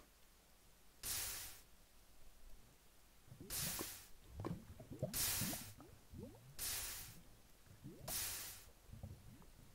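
Lava fizzes and hisses in short bursts.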